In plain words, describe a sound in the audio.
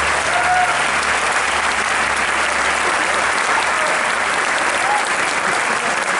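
A live rock band plays loudly in a large echoing hall.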